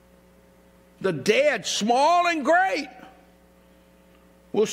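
A middle-aged man speaks with emphasis into a microphone in a large echoing hall.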